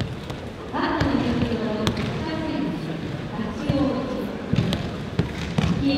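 People land with thuds on a padded mat as they are thrown.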